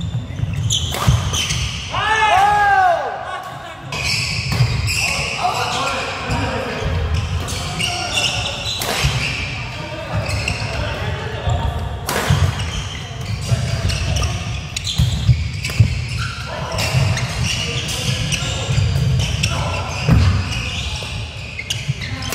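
Rackets strike a shuttlecock again and again in a large echoing hall.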